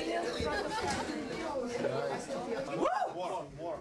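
Several people talk over one another.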